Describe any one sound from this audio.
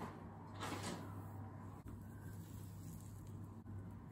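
Wet hair squishes as lather is worked through it.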